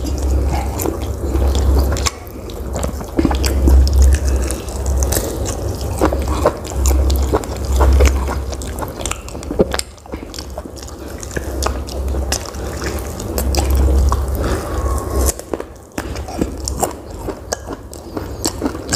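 A man chews food noisily with his mouth open, close to a microphone.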